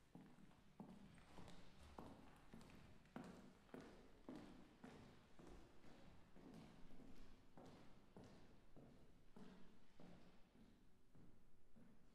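Footsteps knock on a wooden stage in a large echoing hall.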